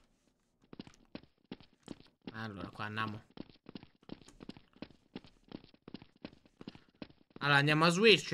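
Footsteps tap quickly on stone stairs.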